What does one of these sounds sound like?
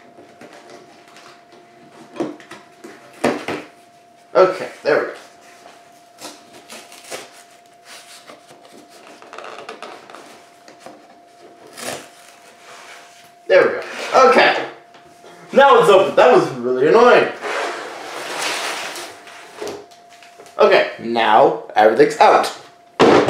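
A cardboard box scrapes and knocks on a tabletop.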